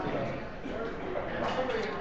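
Game pieces click against a wooden board.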